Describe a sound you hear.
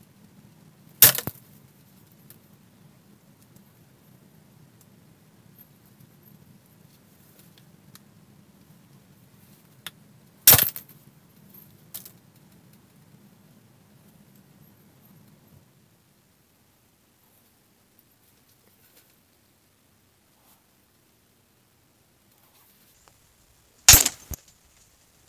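A wooden mallet knocks sharply on a carving tool a few times.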